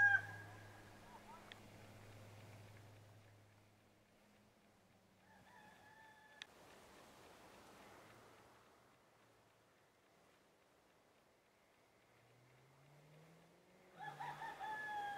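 A small dog whines in short, high cries.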